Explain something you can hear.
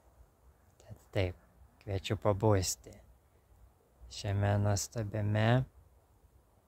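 A young man speaks calmly, close to the microphone.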